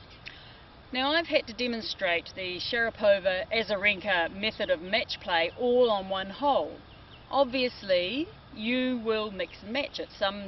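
A middle-aged woman speaks calmly and clearly, close by.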